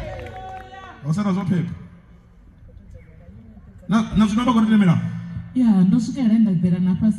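A man speaks with animation through a microphone and loudspeakers, outdoors.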